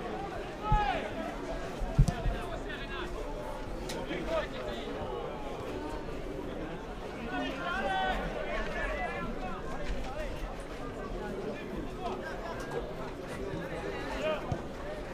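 A crowd of spectators murmurs and chatters outdoors.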